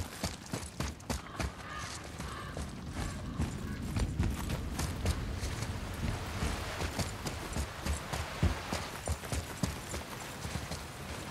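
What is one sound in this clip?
Heavy footsteps run across a stone floor.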